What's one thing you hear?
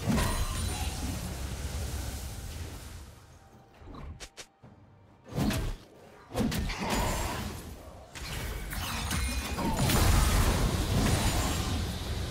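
Magical spell effects whoosh and crackle during a fight.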